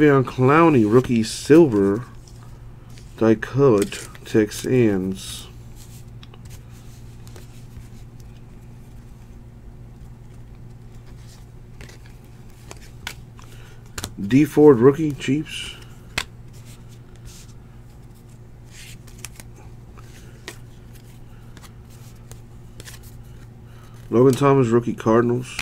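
Cards rustle and slide against each other as they are handled.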